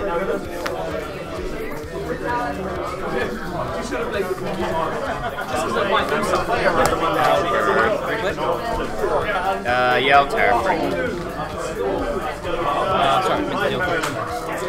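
Playing cards slide and tap on a table.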